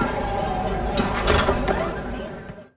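A door is pushed open.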